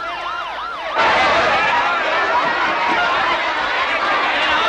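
A crowd of men and women shouts and clamours excitedly nearby.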